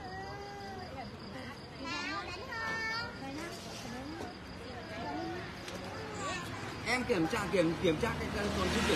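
Several men talk with one another close by.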